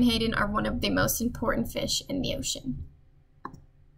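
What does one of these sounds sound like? A young woman speaks calmly close to a microphone.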